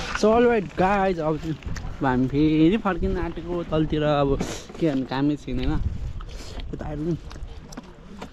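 A young man talks excitedly and close up.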